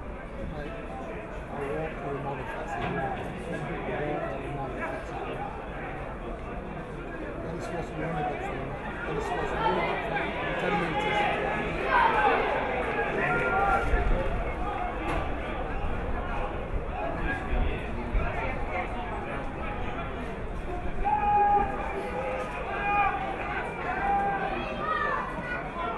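Spectators nearby shout and cheer outdoors.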